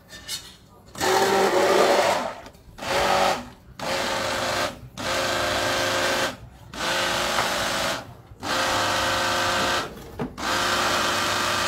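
A hand blender whirs in short bursts, stopping and starting.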